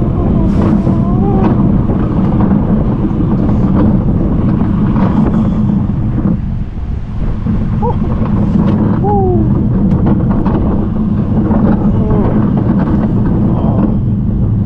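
A steel roller coaster rumbles and rattles along its track.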